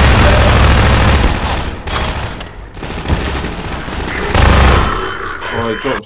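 Gunfire bursts out loudly in rapid shots.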